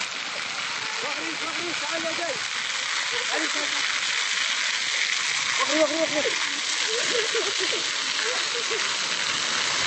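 A young girl speaks in a strained, tearful voice close by.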